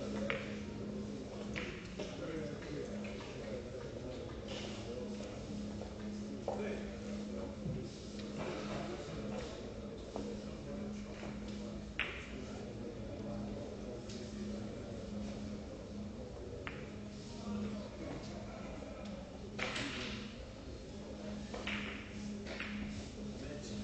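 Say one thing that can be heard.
Billiard balls roll and thud against the cushions.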